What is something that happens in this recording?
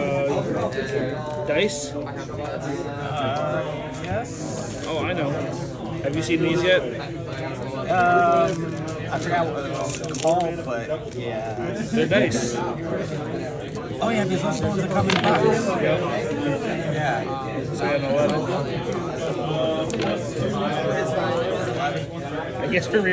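Playing cards are shuffled and riffled by hand.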